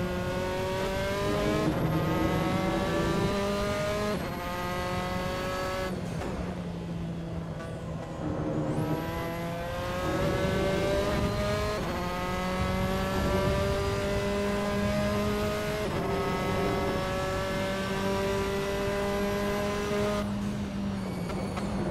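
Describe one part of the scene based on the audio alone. A racing car engine roars at high revs, climbing in pitch and dropping sharply at each gear change.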